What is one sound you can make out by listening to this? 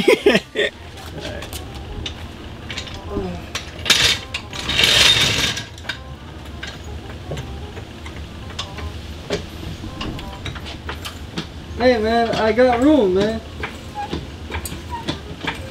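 Metal tools clink and tap against a car.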